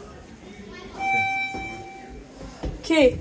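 An elevator chime rings with a steady tone.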